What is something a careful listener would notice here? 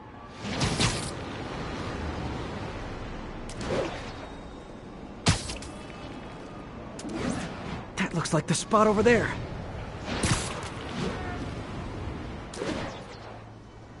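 Sharp whooshes sweep past again and again as a figure swings through the air.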